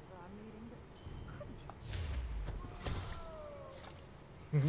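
Magic spells whoosh and crackle in a fight.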